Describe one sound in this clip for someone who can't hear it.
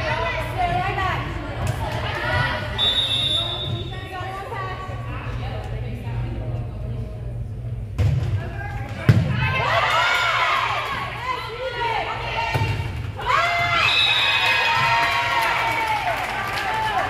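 Spectators cheer and shout in a large echoing gym.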